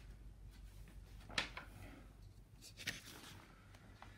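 A sheet of paper rustles as it is turned.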